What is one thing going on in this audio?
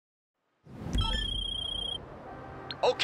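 A phone rings briefly.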